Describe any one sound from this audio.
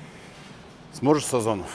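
A man speaks up close.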